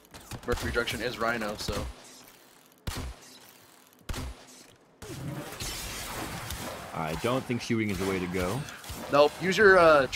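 Weapon shots crack in quick bursts.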